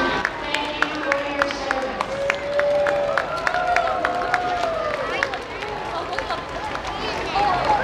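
A crowd of onlookers claps outdoors.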